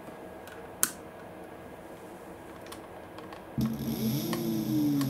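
A plastic wire connector clicks as hands handle it.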